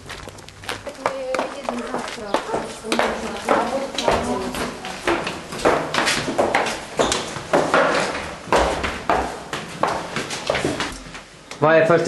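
Footsteps climb stairs in an echoing stairwell.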